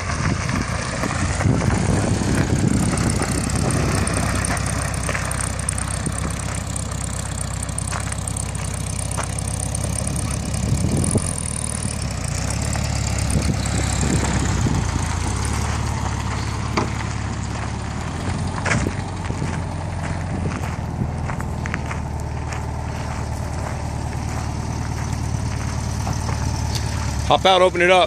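A Volkswagen Beetle's air-cooled flat-four engine runs.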